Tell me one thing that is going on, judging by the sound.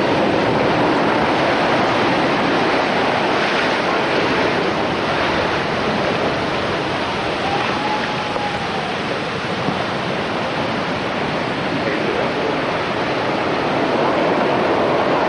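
Heavy waves crash and roar against rocks close by.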